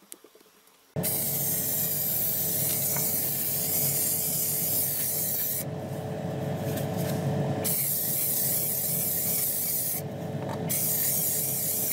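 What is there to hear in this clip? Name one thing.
Spray paint hisses from a can in long bursts.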